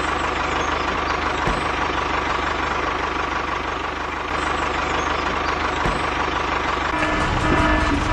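A toy tractor's motor whirs as it rolls along.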